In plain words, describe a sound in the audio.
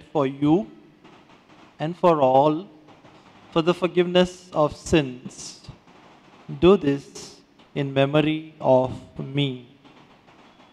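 A middle-aged man chants slowly into a microphone, with a slight echo.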